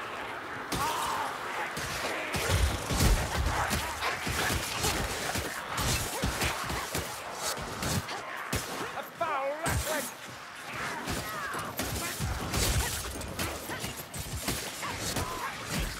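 Creatures snarl and screech during a fight.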